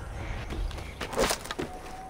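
Wood snaps as a branch is pulled off.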